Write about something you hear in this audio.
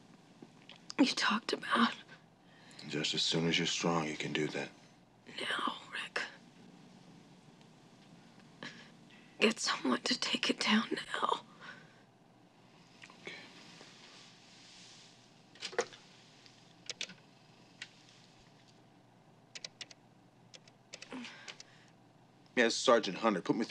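A man speaks quietly and seriously, close by.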